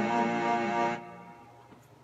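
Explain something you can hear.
An acoustic guitar chord rings out and stops.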